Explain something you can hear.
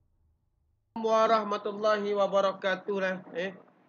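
A man speaks calmly and close to a microphone.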